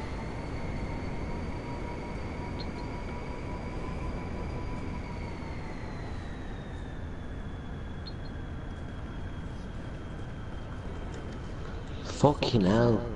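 A car engine hums steadily, its pitch slowly dropping.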